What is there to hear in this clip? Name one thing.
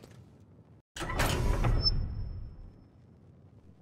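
A heavy door booms open with a deep rumble.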